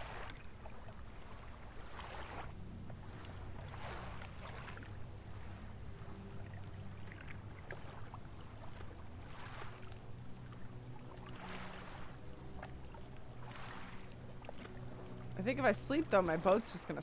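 A boat engine hums low and steady.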